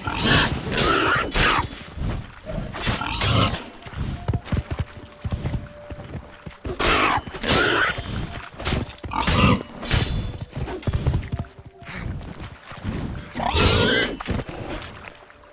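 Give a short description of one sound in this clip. A bear roars and growls.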